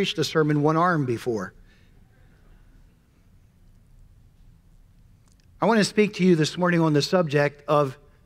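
A middle-aged man speaks with animation into a microphone, heard through loudspeakers in a large hall.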